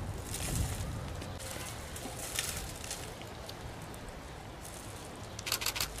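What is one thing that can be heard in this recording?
Dry stalks rustle and crackle as a man pulls a plant from the ground.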